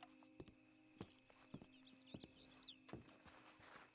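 Boots thud on wooden boards.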